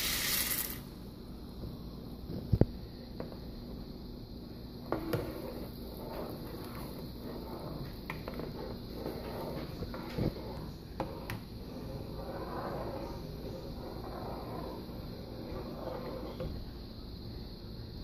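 Water bubbles at a boil in a pot.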